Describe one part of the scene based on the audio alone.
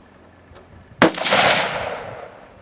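A single gunshot cracks loudly and echoes outdoors.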